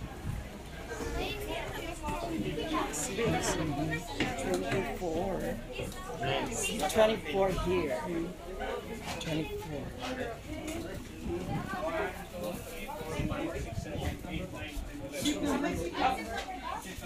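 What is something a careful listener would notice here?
A crowd of people chatters nearby inside an echoing cabin.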